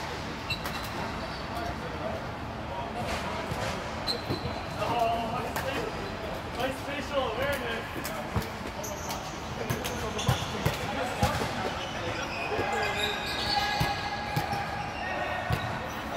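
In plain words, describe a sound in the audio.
Young men and women call out and talk across a large echoing hall.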